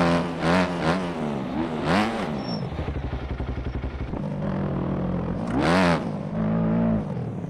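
A motorcycle engine revs up and down, rising and falling in pitch.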